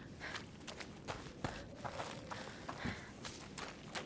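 Footsteps patter quickly over a dirt floor.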